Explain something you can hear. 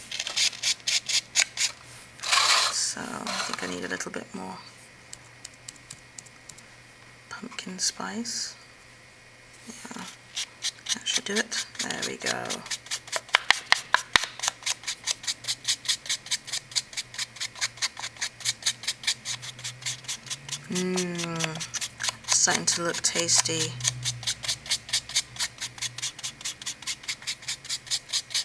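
A foam sponge dabs rapidly on paper in soft, quick taps.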